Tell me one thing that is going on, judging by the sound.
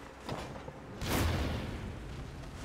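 A sword swings through the air with a whoosh.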